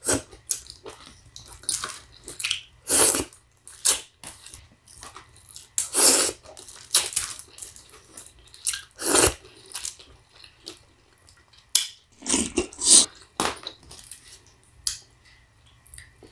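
A woman eats noisily up close, with wet slurping and smacking.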